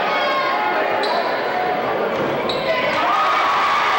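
Sneakers squeak sharply on a wooden floor.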